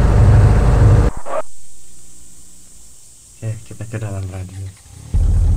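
A car engine rumbles loudly.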